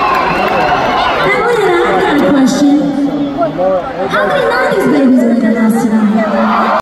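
A woman sings into a microphone over loudspeakers in a large echoing arena.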